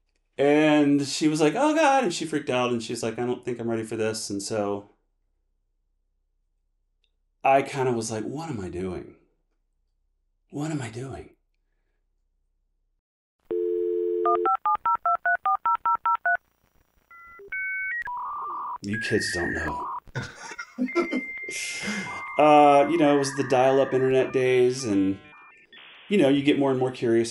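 An older man speaks calmly and close to a microphone, in short bursts with pauses.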